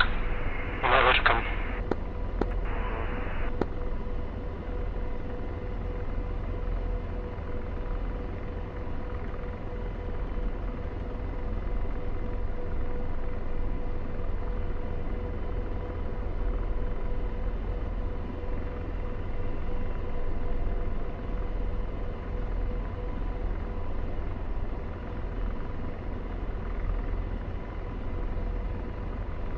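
A steady electronic tone hums from the cockpit systems.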